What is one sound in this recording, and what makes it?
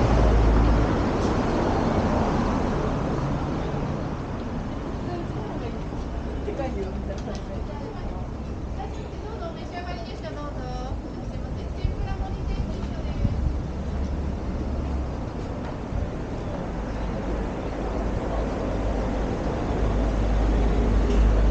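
Traffic hums steadily along a nearby street.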